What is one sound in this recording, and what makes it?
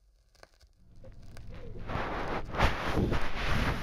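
Cloth rubs and rustles right against the microphone.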